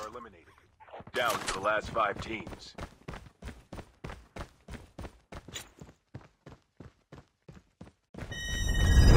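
Footsteps clatter quickly on metal stairs.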